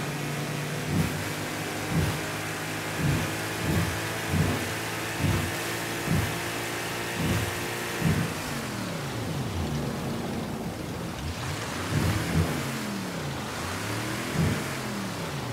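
A boat hull slaps and thumps over waves.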